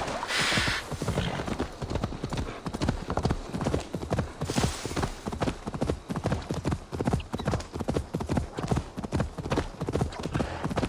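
A horse's hooves thud rhythmically on soft ground.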